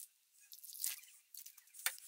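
Water pours and splashes into a tub.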